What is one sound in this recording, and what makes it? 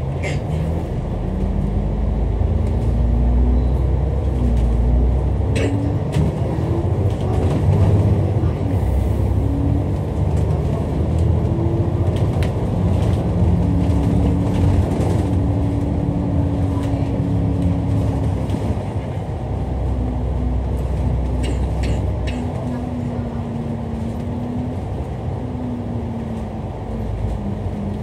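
A bus engine hums and whines steadily as the bus drives along.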